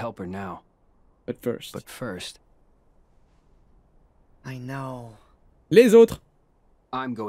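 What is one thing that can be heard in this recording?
A young man speaks in short bursts into a microphone.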